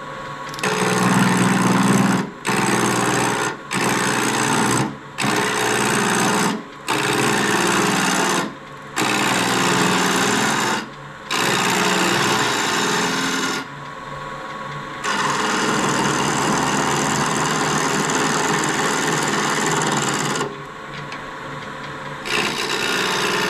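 A lathe motor hums steadily.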